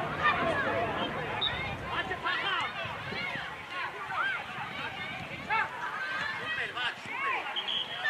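Children shout and call out to each other outdoors.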